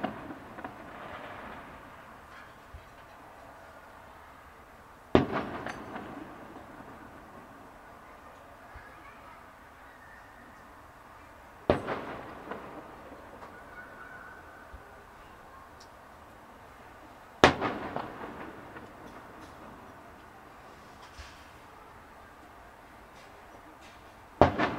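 Fireworks bang loudly in the sky, each boom echoing and rumbling away.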